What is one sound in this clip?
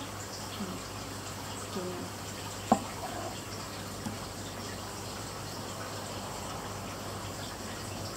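A knife slices through soft fruit.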